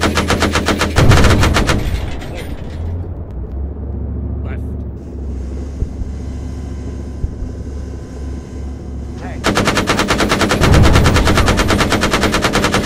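Shells explode with heavy booms.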